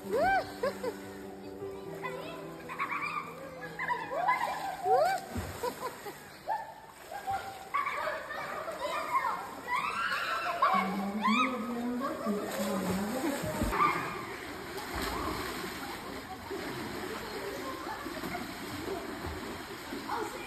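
Water splashes in an indoor pool.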